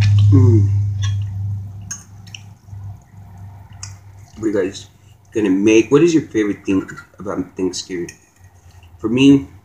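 A fork scrapes and clinks on a plate.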